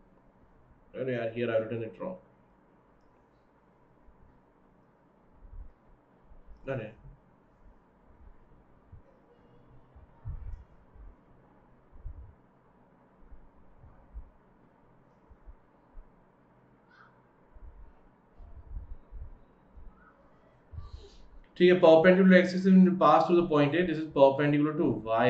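A young man speaks calmly into a close microphone, with long pauses.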